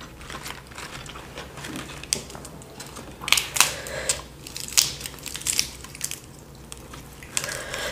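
Crisp lettuce leaves crinkle and crunch in a woman's hands.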